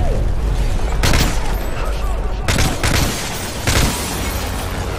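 Rifle shots ring out several times, loud and sharp.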